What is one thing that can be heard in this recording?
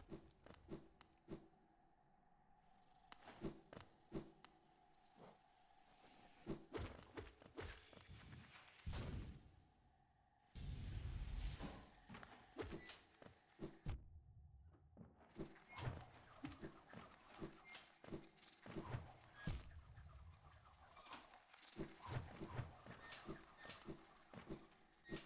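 Game sound effects of quick slashes and dashes ring out in rapid bursts.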